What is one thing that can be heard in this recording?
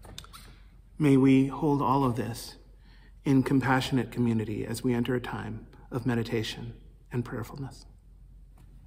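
A man speaks calmly and with feeling close to a microphone.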